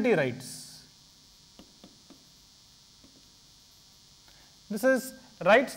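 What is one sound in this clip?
A man speaks in a lecturing tone through a microphone, in short bursts.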